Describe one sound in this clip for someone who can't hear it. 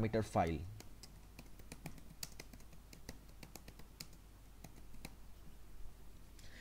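Keys clack on a keyboard in quick, uneven taps.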